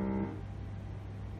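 A piano chord rings out briefly and stops.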